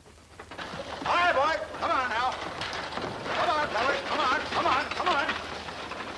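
A man calls out loudly with animation.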